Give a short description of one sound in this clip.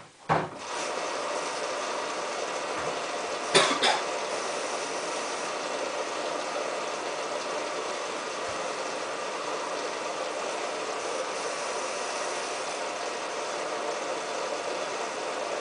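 A washing machine drum turns with a steady whirring hum.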